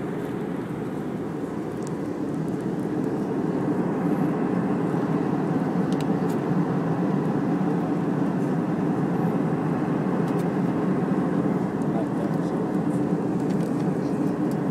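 Jet engines roar with a steady, low rumble inside an airliner cabin.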